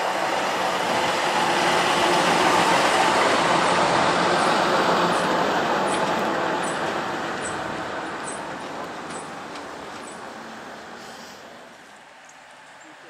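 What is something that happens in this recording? A vintage diesel bus towing a passenger trailer drives past and fades away.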